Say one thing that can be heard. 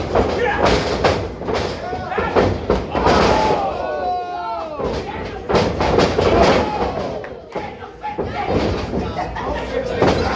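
Feet stomp and thud on a springy wrestling ring.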